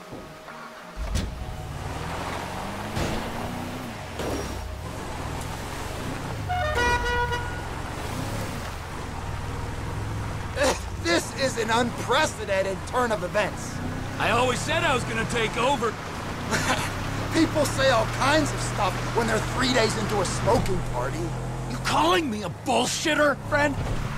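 A truck engine rumbles and revs as it drives over rough ground.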